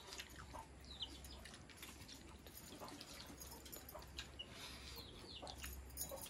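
A man mixes wet rice by hand in a metal bowl with a soft squelching sound.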